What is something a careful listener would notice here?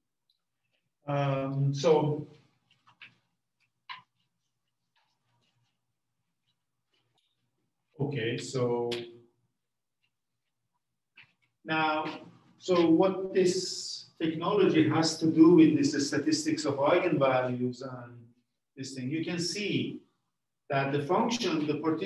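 An elderly man lectures calmly, pausing often.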